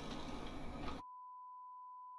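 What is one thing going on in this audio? A steady high test tone sounds.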